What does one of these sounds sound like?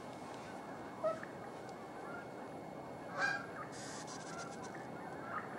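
Geese call now and then in the distance.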